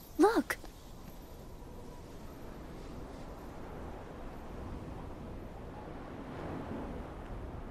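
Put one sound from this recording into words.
Wind blows steadily, whipping up sand.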